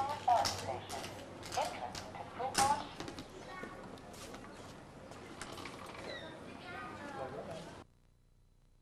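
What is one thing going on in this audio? A cane taps sharply on hard ground.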